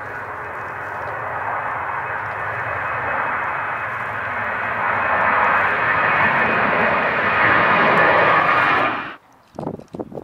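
A jet airliner roars loudly overhead as it climbs, growing louder.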